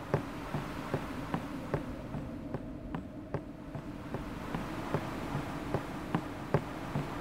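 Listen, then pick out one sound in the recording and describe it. Quick footsteps thud across wooden planks.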